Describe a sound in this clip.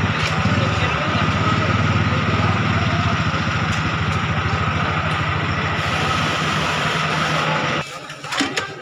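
A bus engine idles with a loud, steady rumble.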